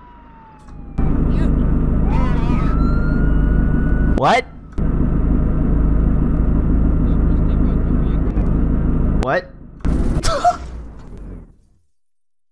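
A car engine roars loudly.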